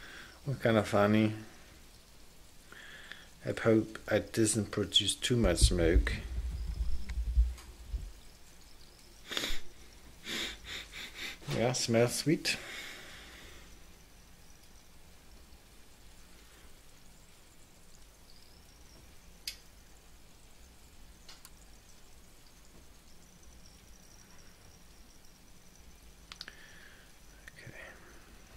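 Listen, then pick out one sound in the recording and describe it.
Melting sugar sizzles and bubbles faintly in a hot pan.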